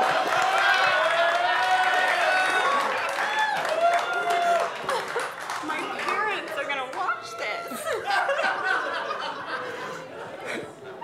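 A woman laughs loudly and happily.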